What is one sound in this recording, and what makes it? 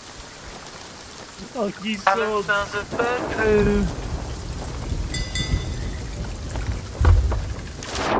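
Waves wash against a wooden pier.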